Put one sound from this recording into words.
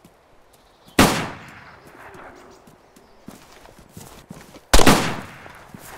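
A revolver fires loud single shots that ring out across open ground.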